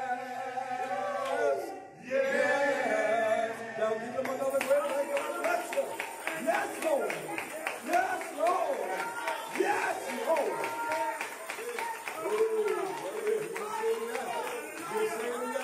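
Men sing together into microphones, with strong, gliding voices.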